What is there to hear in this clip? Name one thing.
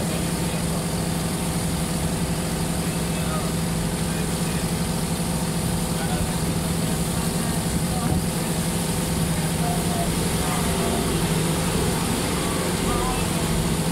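Water splashes against the side of a moving boat.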